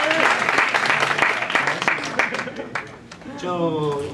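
A young man speaks into a microphone with a laugh.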